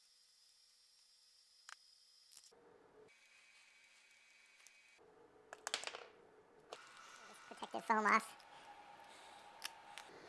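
Plastic battery parts click and rattle as they are handled.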